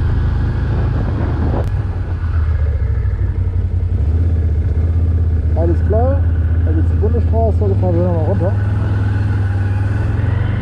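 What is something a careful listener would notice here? An engine hums steadily as a vehicle drives along.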